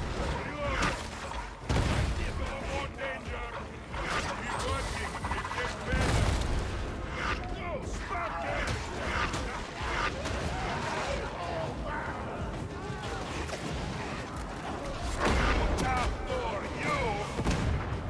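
Heavy guns fire in loud rapid bursts.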